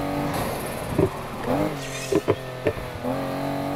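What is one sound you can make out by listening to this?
A car scrapes and crashes against a roadside barrier with loud knocks.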